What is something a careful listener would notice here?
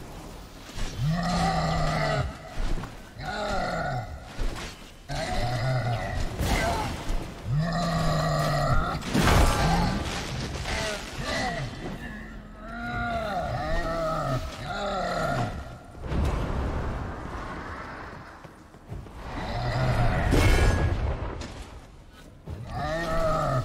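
A sword swings and strikes in a fight.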